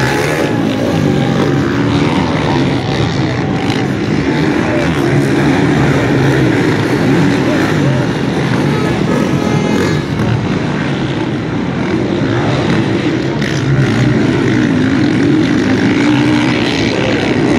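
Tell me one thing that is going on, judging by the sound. Motorbike engines buzz and rev in the distance.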